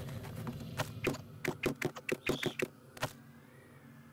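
A hammer strikes wood in quick repeated blows.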